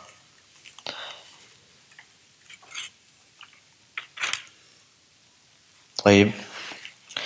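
A man reads aloud calmly and slowly, close to a microphone, with pauses between words.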